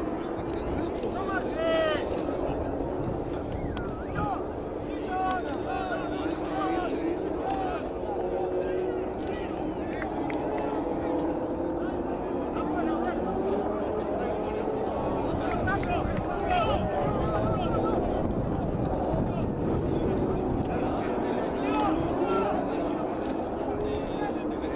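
Men and women players shout and call out to each other on an open outdoor field.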